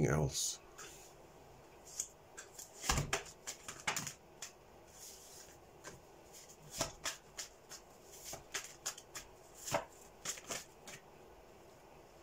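Playing cards tap and riffle as they are shuffled by hand.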